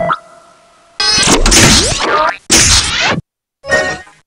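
A cartoon spaceship whooshes past.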